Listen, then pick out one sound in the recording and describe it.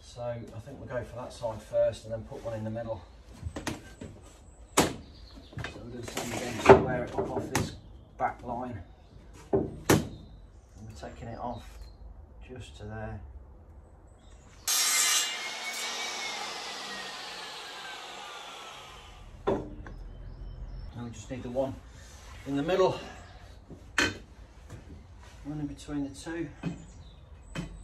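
Glass panels knock and clatter.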